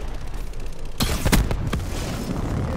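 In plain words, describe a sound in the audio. An automatic rifle fires in short bursts.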